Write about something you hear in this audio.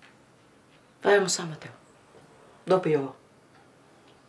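A young woman speaks in short, tense phrases close by.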